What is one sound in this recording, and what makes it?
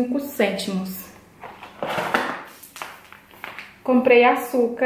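A paper bag rustles as it is handled.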